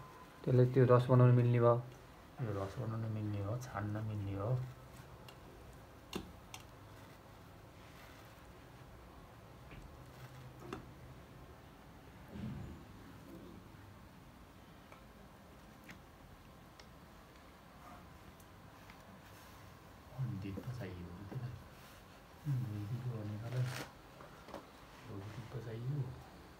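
A metal tool scrapes soft wax comb off a frame.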